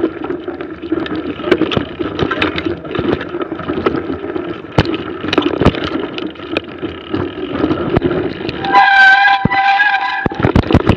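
A bicycle rattles and knocks over bumps.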